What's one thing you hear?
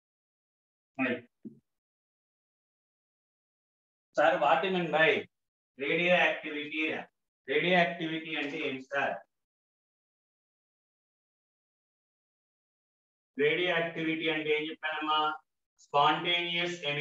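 A man speaks calmly in short phrases, heard through a microphone in an online call.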